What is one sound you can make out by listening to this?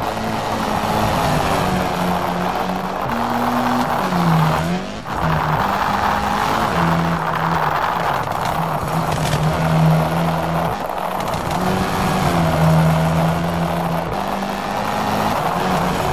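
A rally car engine revs hard, rising and falling as it shifts gears.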